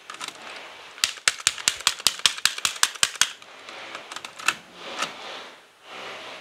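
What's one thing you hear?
A plastic cassette clatters and clicks as it is taken out and put back in.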